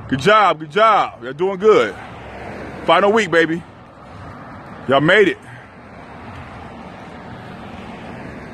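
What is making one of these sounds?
Footsteps slap on pavement as people run past.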